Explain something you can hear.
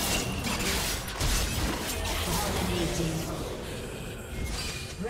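Game spells and attacks crackle and hit in quick bursts.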